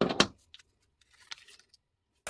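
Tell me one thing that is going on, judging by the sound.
A paper label rustles between fingers.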